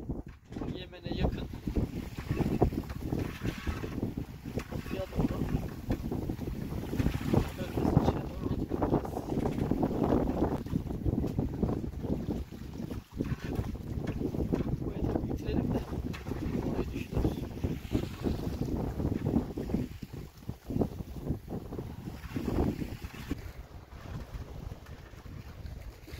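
Wind rushes loudly over a microphone outdoors.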